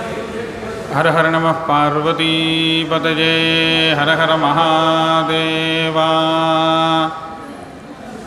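A man chants long, drawn-out notes through a microphone.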